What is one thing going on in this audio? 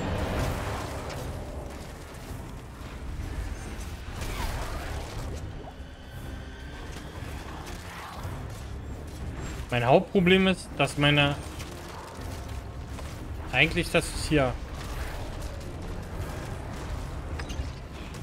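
Heavy blows and magic blasts thud and crash in a battle.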